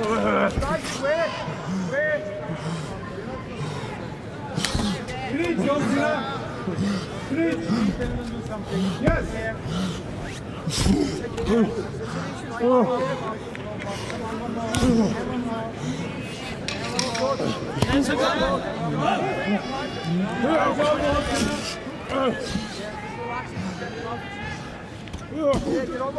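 Punches thud against a body in quick bursts.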